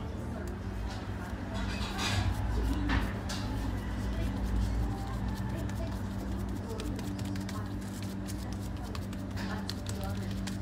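Gloved hands press and scrape a soft paste on a plastic board.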